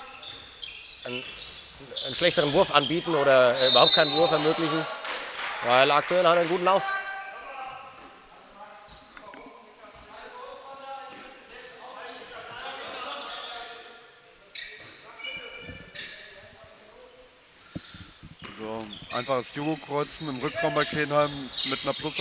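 Sports shoes squeak on the floor.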